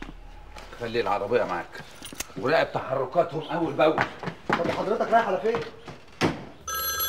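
A man speaks urgently up close.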